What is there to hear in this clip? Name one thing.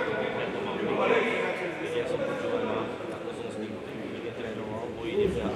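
Players' voices call out across a large echoing hall.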